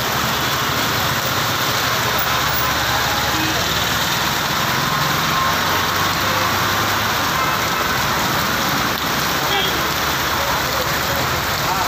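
Car engines rumble past on a wet road.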